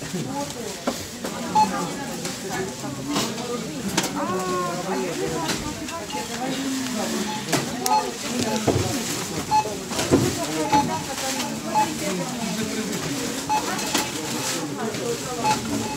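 Adult shoppers talk nearby.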